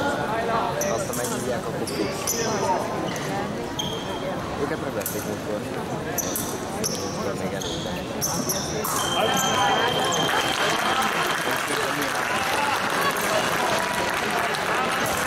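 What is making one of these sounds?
A crowd murmurs and then cheers in a large echoing hall.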